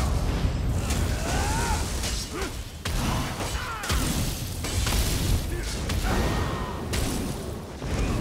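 Crackling electric spell blasts strike again and again.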